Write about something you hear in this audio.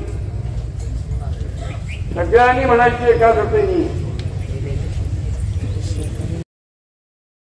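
An elderly man speaks loudly into a microphone.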